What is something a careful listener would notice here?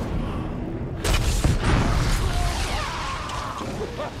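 A fiery blast roars loudly.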